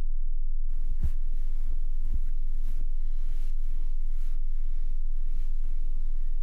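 Bare feet thump on the floor.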